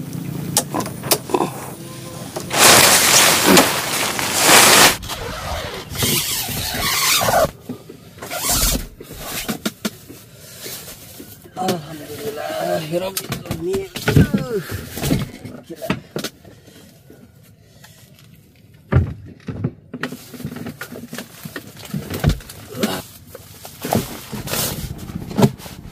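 Tent fabric rustles and flaps.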